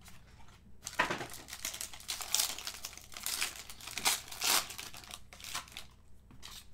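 A foil wrapper crinkles and tears as it is pulled open.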